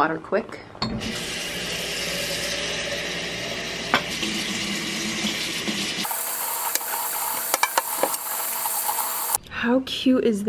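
Tap water runs and splashes into a sink.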